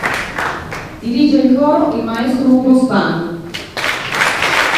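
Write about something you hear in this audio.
A mixed choir sings together in a large echoing space.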